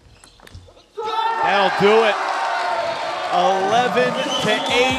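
A crowd cheers and applauds loudly in a large hall.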